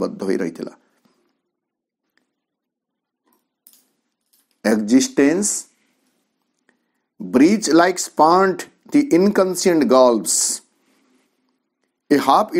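A middle-aged man speaks calmly and close to a microphone, with pauses between phrases.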